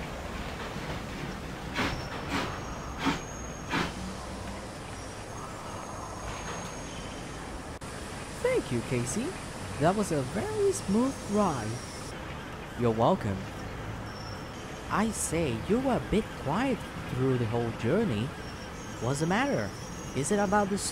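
A steam locomotive idles with a low, steady rumble.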